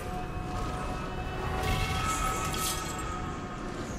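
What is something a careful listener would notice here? Metal clinks and rattles as a heavy chest is opened.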